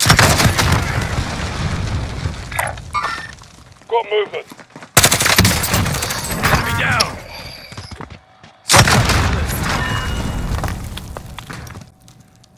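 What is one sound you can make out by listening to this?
Rapid gunshots ring out loudly.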